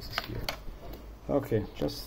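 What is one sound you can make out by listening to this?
A watch button clicks.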